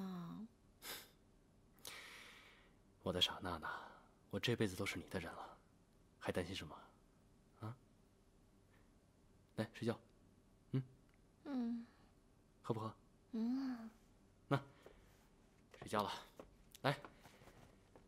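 A young man speaks gently, close by.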